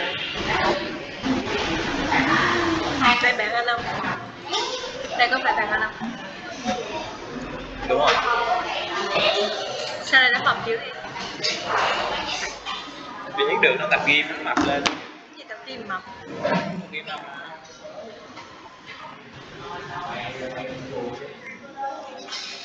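A young woman speaks calmly and clearly, as if teaching, heard through a microphone over an online call.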